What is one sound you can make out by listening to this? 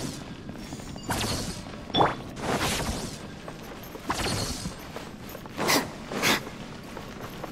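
Magic attacks whoosh and crackle in short bursts.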